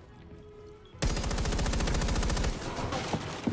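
An automatic rifle fires a rapid burst of shots close by.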